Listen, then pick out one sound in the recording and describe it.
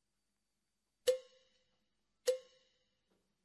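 A drummer strikes a drum and cymbal.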